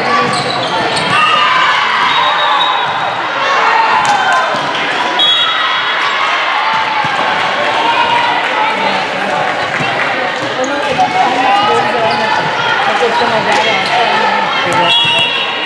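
A volleyball is hit with sharp smacks.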